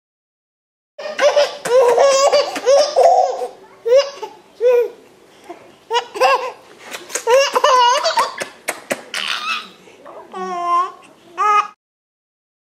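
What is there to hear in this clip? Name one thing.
A young man talks playfully to a baby up close.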